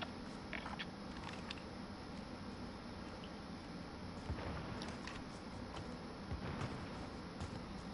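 A man talks casually into a headset microphone, close up.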